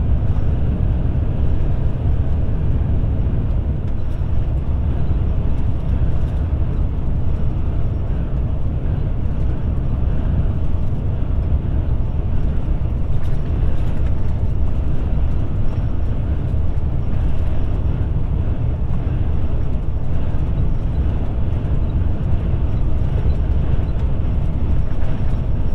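Tyres roll steadily over the road.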